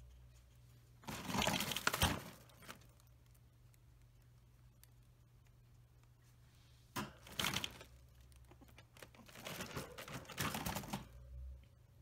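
A rabbit bumps and rattles against a wire cage in short bursts.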